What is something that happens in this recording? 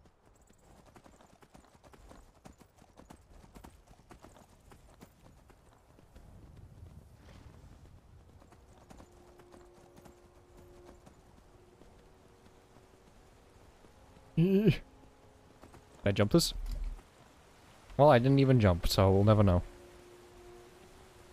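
Horse hooves clop on rocky ground.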